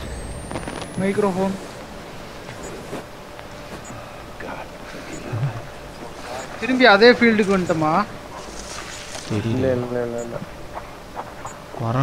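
Leaves rustle and brush past.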